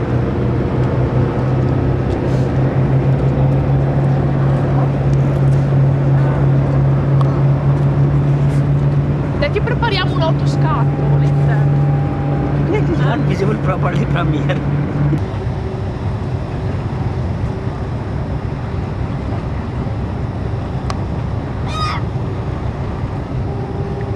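A boat engine drones steadily nearby.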